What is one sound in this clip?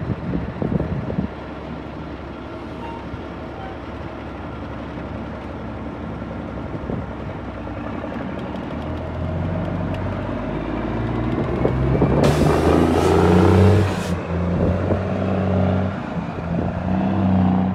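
A heavy truck's diesel engine rumbles, growing louder as the truck pulls away.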